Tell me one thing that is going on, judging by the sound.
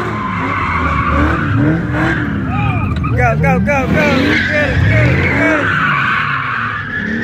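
A car engine revs hard up and down, close by.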